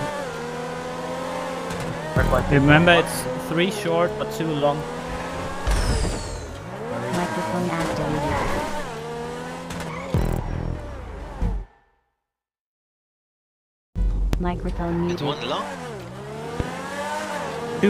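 A racing car engine roars and revs up and down.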